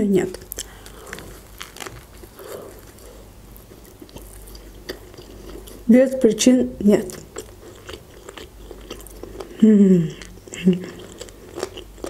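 A young woman bites into soft food and chews noisily close to a microphone.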